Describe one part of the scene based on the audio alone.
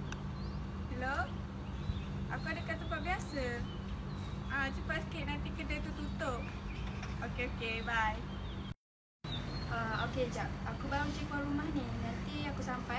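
A young woman talks into a phone close by.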